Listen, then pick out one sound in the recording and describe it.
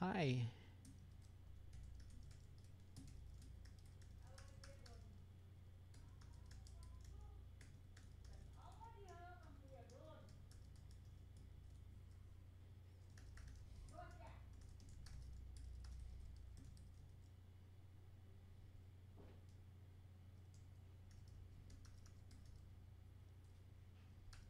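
Keys on a keyboard click rapidly.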